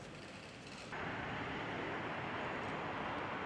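Traffic rumbles steadily along a busy road.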